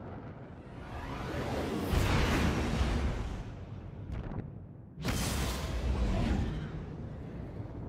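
A spaceship roars past with a rushing whoosh.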